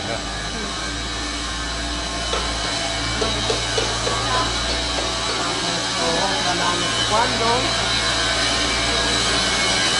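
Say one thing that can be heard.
Two young women talk quietly while walking.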